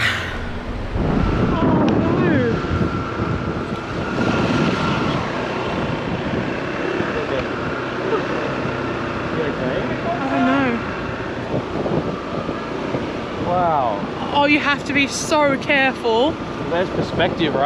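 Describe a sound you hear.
A motorcycle engine hums as it rides along a road.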